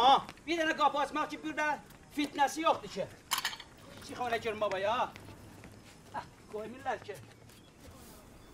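A woman calls out loudly nearby.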